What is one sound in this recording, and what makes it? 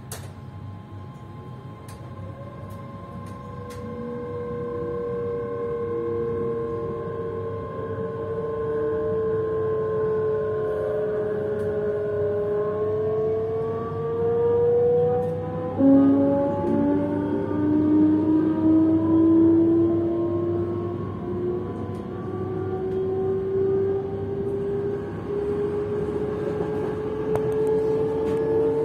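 Train wheels rumble on the track.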